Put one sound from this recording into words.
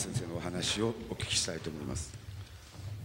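A man speaks briefly in a large echoing hall.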